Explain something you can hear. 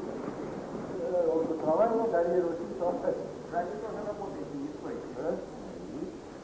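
A man speaks calmly in an echoing hall.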